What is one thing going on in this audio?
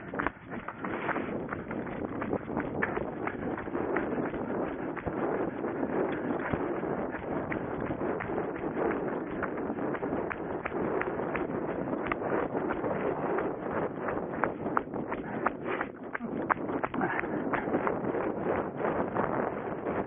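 Wind rushes and buffets against the microphone.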